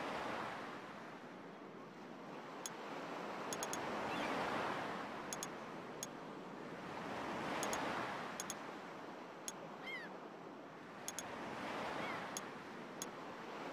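Waves wash gently onto a shore in slow surges.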